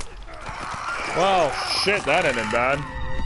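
A man groans and grunts with strain in a struggle.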